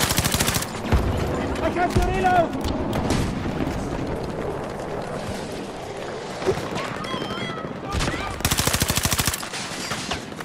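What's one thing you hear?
A rifle fires rapid automatic bursts close by.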